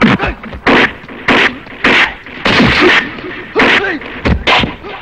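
Punches and kicks land with loud, sharp smacks.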